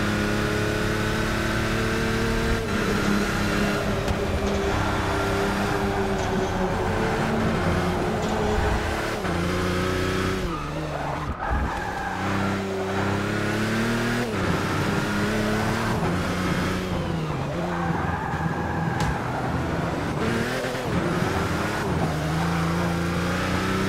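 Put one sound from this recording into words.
A racing car engine roars loudly, rising and dropping in pitch as it shifts gears and brakes.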